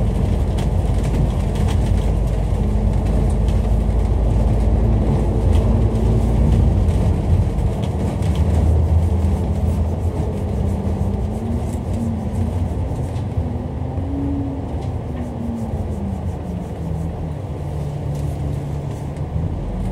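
Traffic rumbles past on a road outdoors.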